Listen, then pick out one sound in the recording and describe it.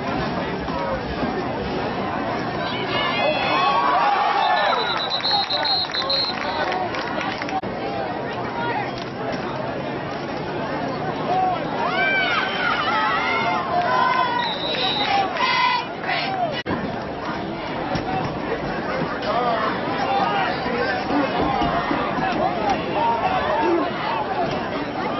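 A crowd cheers and shouts from the stands outdoors.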